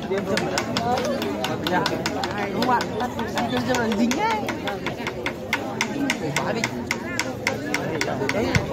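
A crowd of men and women talks and calls out close by, outdoors.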